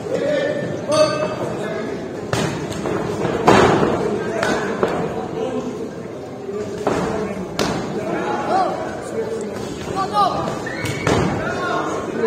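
Punches thud against gloves and bodies.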